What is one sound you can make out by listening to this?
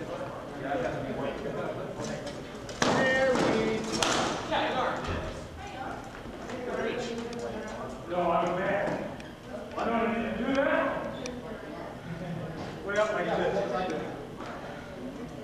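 Wooden weapons clack against shields and armour in a large echoing hall.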